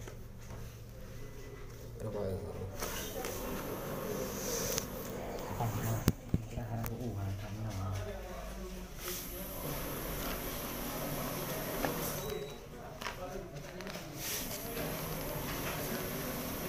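Paper banknotes rustle and flick as a man counts them by hand.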